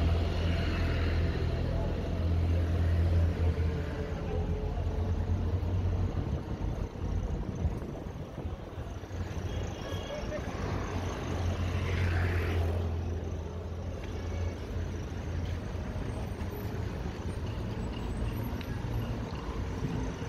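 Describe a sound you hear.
Road traffic rumbles steadily nearby outdoors.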